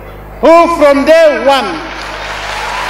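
A man speaks loudly with emphasis through a microphone and loudspeakers, outdoors.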